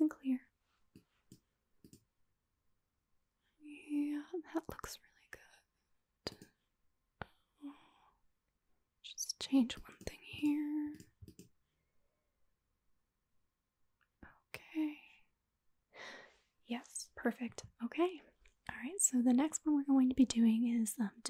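A young woman speaks calmly into a close microphone, with pauses.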